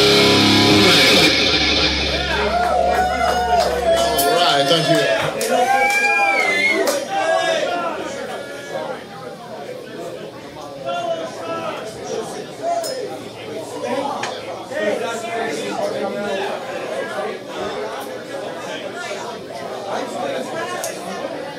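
A rock band plays loudly with electric guitars, bass and drums.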